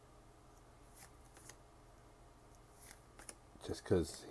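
Playing cards slide and flick softly against each other.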